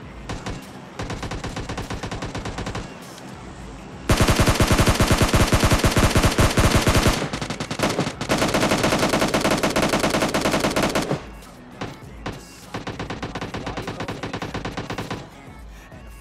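An automatic rifle fires in long rapid bursts, loud and close.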